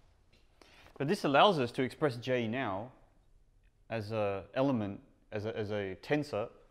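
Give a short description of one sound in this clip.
A man speaks calmly, addressing a room.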